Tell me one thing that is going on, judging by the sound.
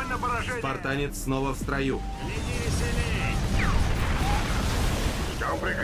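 Weapons fire in rapid bursts during a battle.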